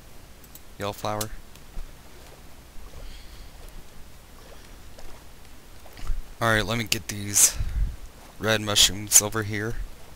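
Water splashes softly as a swimmer paddles.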